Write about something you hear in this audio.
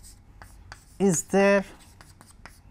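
A man speaks a few words calmly, close by.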